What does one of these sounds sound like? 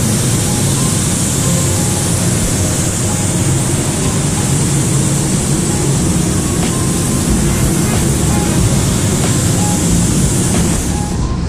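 A spray gun hisses steadily as it sprays paint.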